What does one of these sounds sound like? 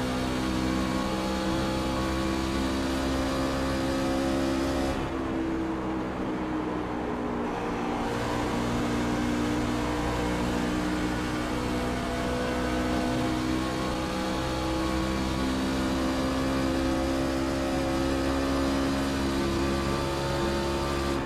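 A V8 stock-car truck engine roars at full throttle in a racing simulator.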